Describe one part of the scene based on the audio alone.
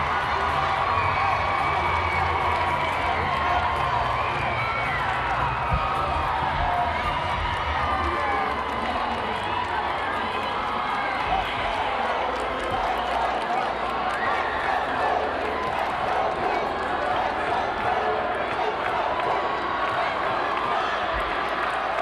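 Young women cheer and shout excitedly.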